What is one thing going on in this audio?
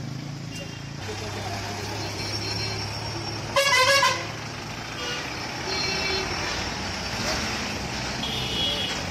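An engine rumbles as a truck drives past.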